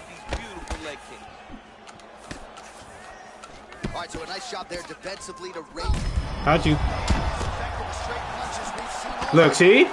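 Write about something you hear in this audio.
Punches thud and slap against a fighter's body.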